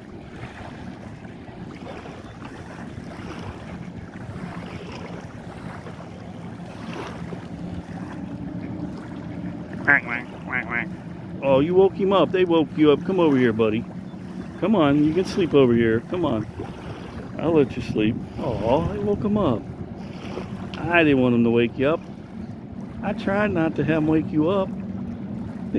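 Small waves lap gently against the shore.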